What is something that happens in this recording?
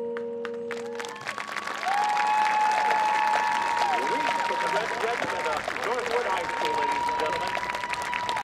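A marching band plays brass and woodwinds outdoors.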